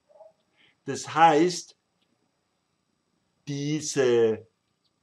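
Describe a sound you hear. An older man speaks calmly into a close microphone, in short phrases.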